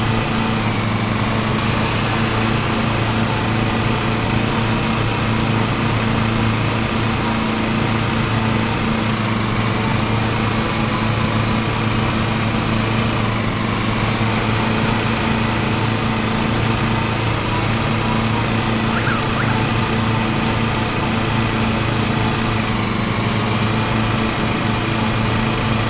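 A riding lawn mower engine drones steadily.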